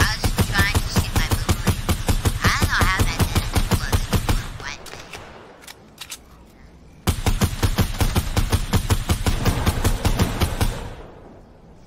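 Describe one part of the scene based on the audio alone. An automatic rifle fires rapid bursts.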